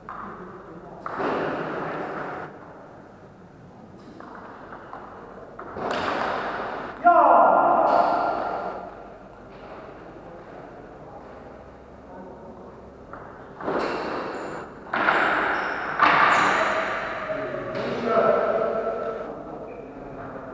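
A young man shouts loudly in an echoing hall.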